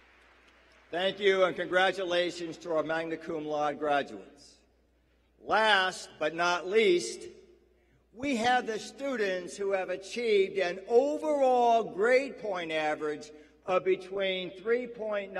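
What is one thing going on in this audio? A man speaks through a loudspeaker calmly, echoing in a large hall.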